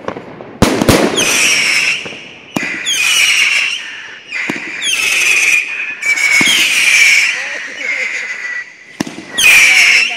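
Firework rockets whistle and shriek as they rise.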